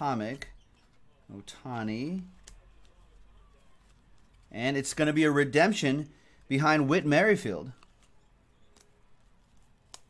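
Foil card wrappers crinkle as they are torn open.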